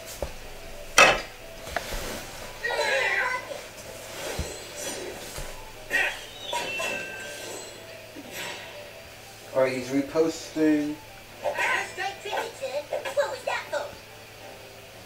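A sword swings and strikes with sharp hits.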